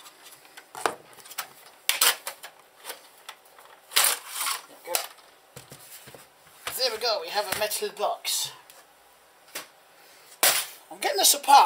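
A metal case knocks and scrapes against a hard workbench close by.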